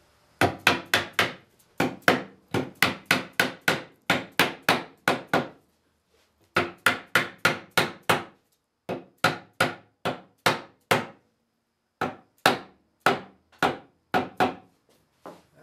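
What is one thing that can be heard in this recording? A mallet taps wood in quick, sharp bursts.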